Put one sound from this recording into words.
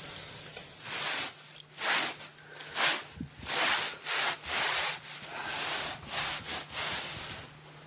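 Dough thumps and slaps on a wooden board.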